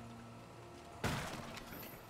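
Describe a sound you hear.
A character's attack strikes an enemy with a sudden burst of noise.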